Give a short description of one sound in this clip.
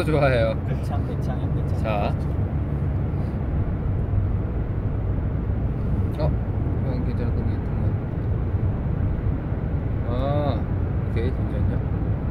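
A young man speaks casually and close to the microphone.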